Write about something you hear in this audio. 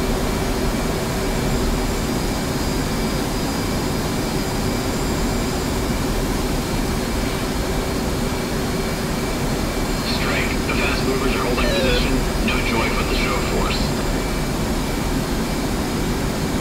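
A jet engine roars steadily inside a cockpit.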